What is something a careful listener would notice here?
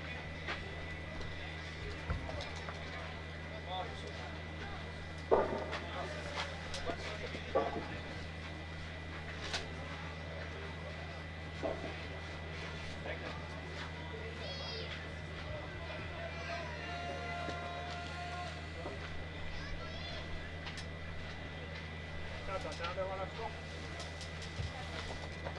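A crowd of spectators murmurs outdoors.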